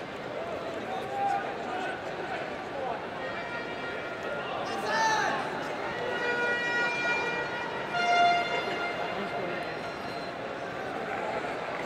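Men shout to each other outdoors across a football pitch.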